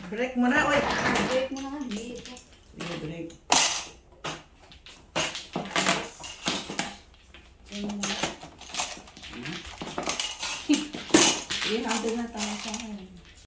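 Plastic tiles clatter and click as hands shuffle them across a table.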